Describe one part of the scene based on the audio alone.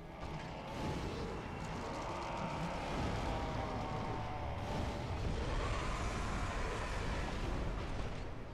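A fireball bursts with a loud roaring rumble.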